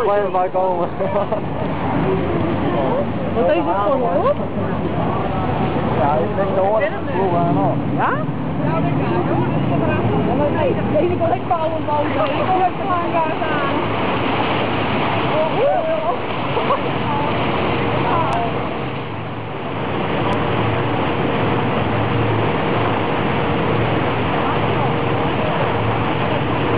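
Water laps and splashes.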